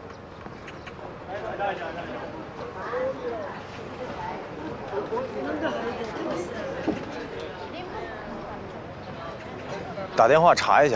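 A crowd murmurs in the background outdoors.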